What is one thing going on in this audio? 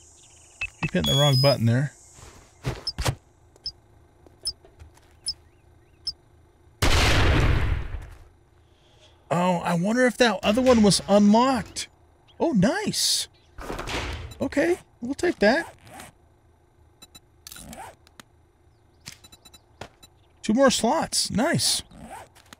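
An older man talks with animation into a close microphone.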